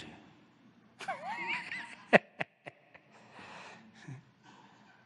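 An elderly man laughs softly.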